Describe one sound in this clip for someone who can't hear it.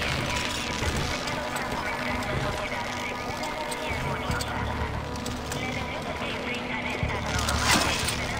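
A rope creaks as a climber slides down it.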